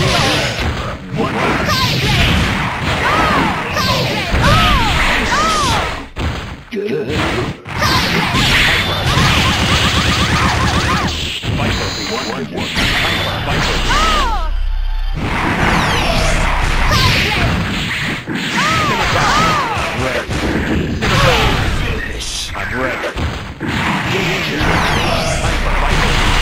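Fast electronic game music plays.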